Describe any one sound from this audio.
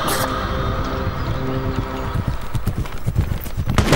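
A horse gallops over rough ground.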